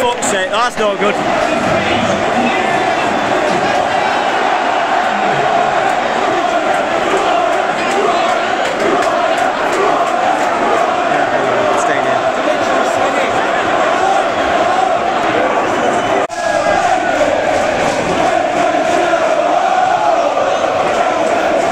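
A huge stadium crowd roars and cheers steadily.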